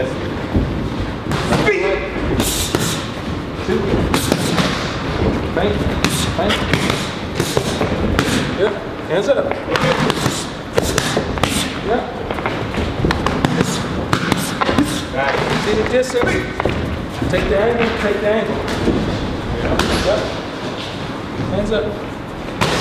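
Boxing gloves smack against punch mitts in quick bursts.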